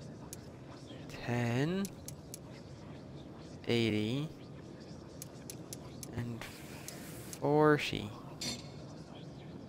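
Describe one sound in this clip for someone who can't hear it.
A safe's combination dial clicks as it turns.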